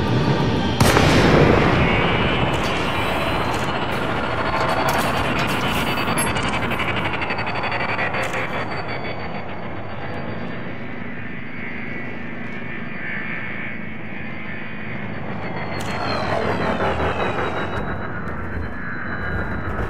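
A spaceship engine roars with a steady rushing hum.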